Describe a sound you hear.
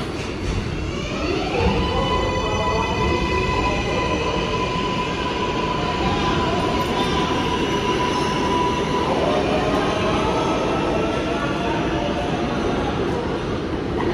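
A subway train pulls out of an echoing underground station, its motors whining higher as it gathers speed.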